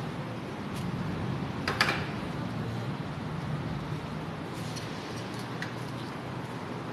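A metal door clanks as a hand pushes it open.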